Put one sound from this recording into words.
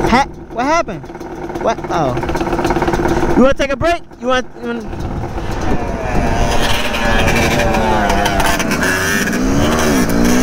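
A quad bike engine revs up and down loudly close by.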